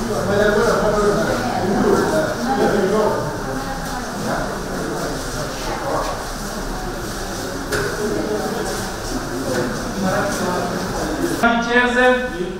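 A crowd of people murmurs and chatters in an echoing room.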